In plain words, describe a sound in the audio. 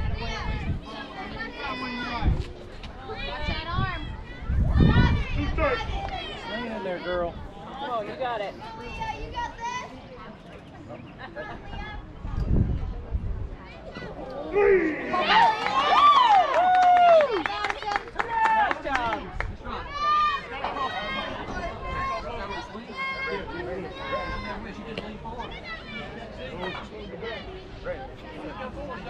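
Young girls shout and cheer outdoors across an open field.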